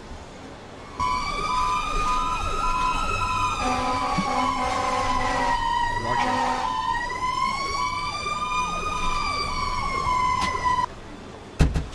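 A fire engine siren wails up and down.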